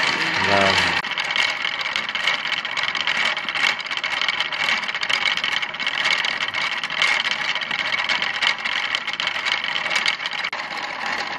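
Thread whirs softly as it winds onto a spinning spindle.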